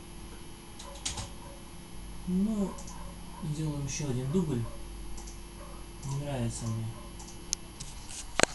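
Buttons click now and then.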